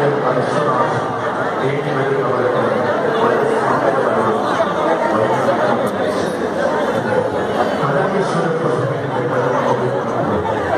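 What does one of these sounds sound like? A large crowd of men shouts and cheers close by.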